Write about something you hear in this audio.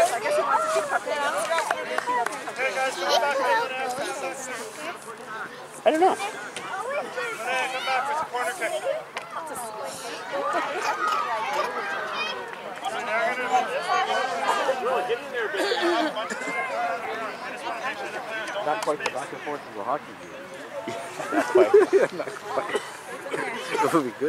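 Young children chatter and call out nearby, outdoors.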